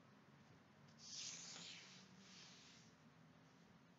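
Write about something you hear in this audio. Paper rustles and crinkles as a hand smooths it.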